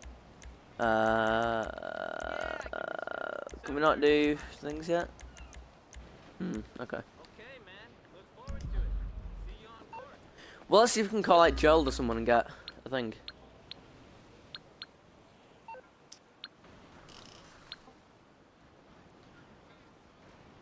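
Short electronic clicks tick as a game menu is scrolled.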